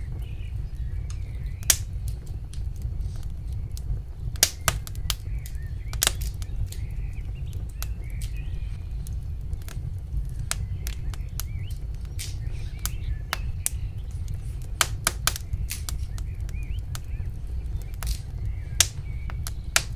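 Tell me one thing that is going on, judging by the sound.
Pieces of food squelch and click as they are pushed onto a wooden skewer.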